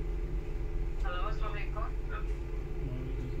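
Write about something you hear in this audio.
A phone plays a short startup chime through its small speaker.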